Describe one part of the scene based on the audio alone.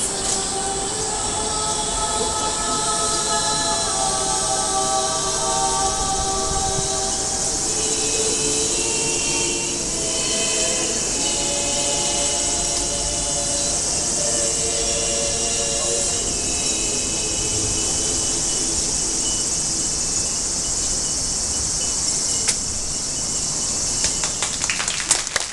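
Music plays loudly through an outdoor loudspeaker.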